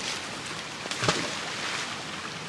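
A heavy object splashes into a river.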